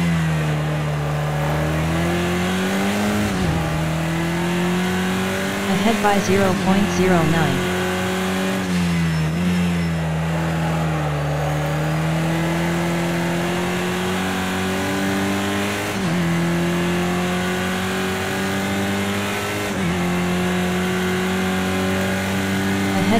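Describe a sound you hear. A racing car engine drones steadily, rising in pitch as it speeds up and dipping at each gear change.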